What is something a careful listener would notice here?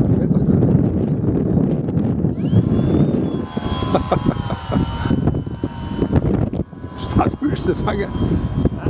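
A model plane's electric motor whines overhead.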